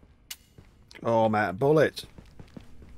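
A middle-aged man talks into a microphone with animation.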